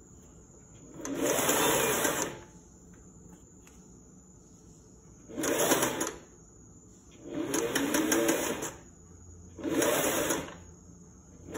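A sewing machine whirs in short bursts as it stitches fabric.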